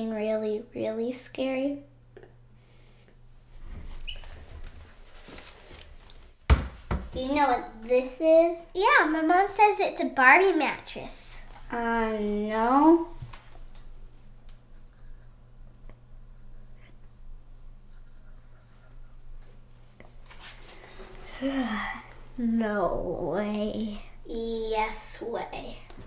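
A young girl talks with animation nearby.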